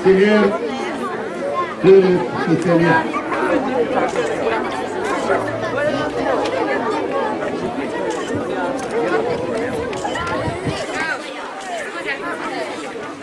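A crowd of children and adults chatters outdoors.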